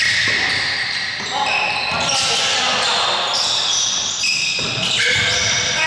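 A basketball bounces on a hard floor with dull thumps.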